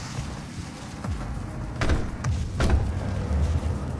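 Heavy footsteps clang on a metal grating.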